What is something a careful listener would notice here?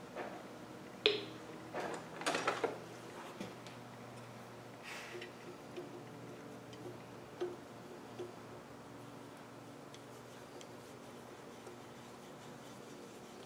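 A metal tool clinks and scrapes against a metal hub.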